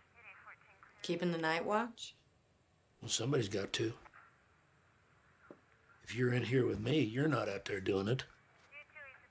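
An elderly man speaks in a low, rough voice.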